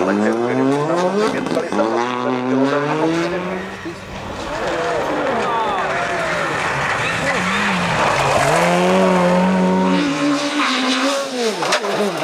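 A rally car engine roars and revs hard, rising and falling in pitch.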